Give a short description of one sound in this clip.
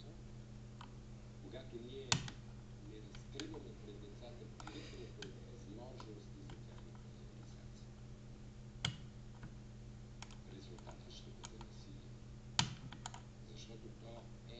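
Metal lock picks scrape and click inside a lock.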